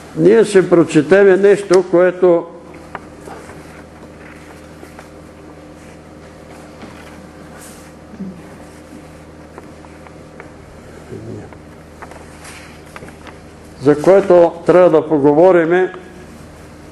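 An elderly man reads aloud calmly through a microphone in an echoing room.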